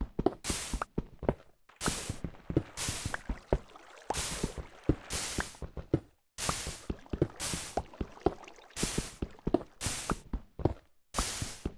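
A pickaxe chips at stone with quick, repeated taps.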